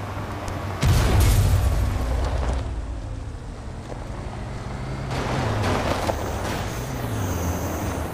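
Cars crash together with loud metallic bangs.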